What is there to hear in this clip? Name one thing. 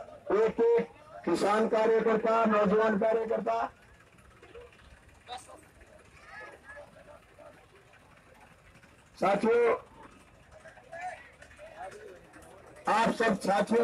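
A man shouts loudly into a microphone through a loudspeaker outdoors.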